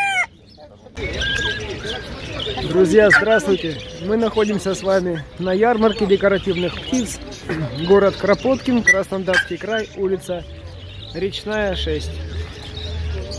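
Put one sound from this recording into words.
Men and women chatter in a busy outdoor crowd.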